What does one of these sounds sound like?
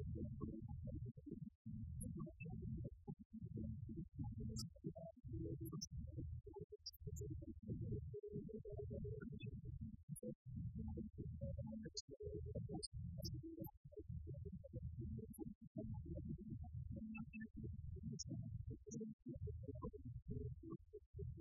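Electric guitars play loudly through amplifiers in a live room.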